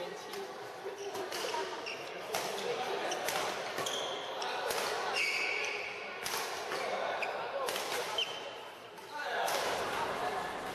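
Badminton rackets strike a shuttlecock in a quick rally, echoing in a large hall.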